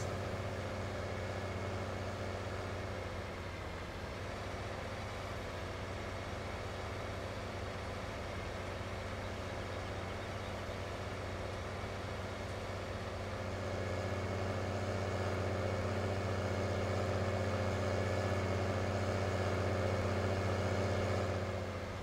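A tractor engine drones steadily, growing a little louder toward the end.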